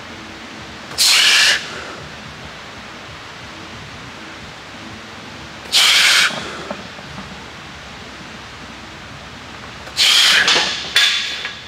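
A man exhales sharply with effort.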